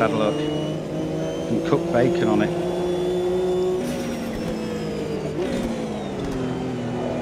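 A racing car engine roars loudly, its pitch rising and dropping with gear changes.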